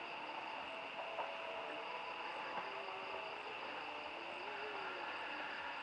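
A man speaks quietly nearby.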